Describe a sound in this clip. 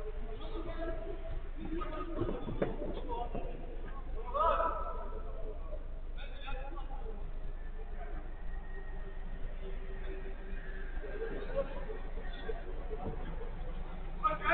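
Young men shout and call to each other during a football game, heard from a distance.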